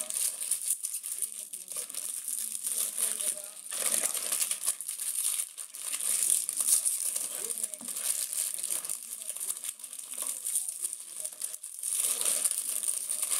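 Foil wrappers crinkle and rustle close by.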